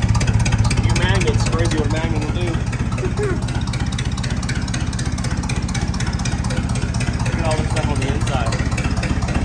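A man talks casually near the microphone over the engine noise.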